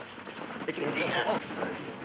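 Boxers' feet shuffle and thud on a canvas floor.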